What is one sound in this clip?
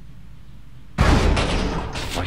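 A heavy thud sounds as someone drops onto a hard floor.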